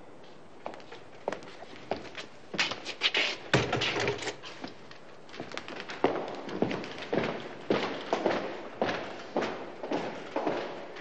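Footsteps echo along a hard corridor.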